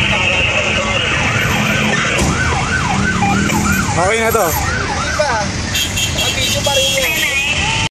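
A fire engine's motor rumbles steadily nearby.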